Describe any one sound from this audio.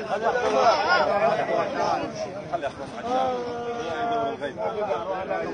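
A crowd of men shouts and chants loudly close by.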